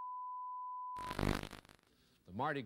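Static hisses briefly from a television.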